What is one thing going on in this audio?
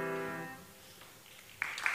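A piano plays a sustained chord that fades out.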